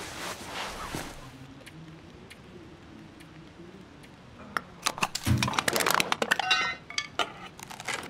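Short menu clicks sound as items are selected and moved.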